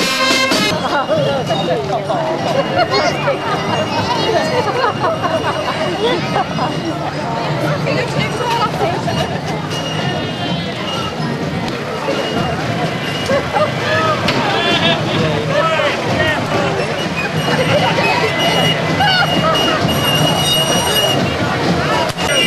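A crowd of people chatter outdoors along a street.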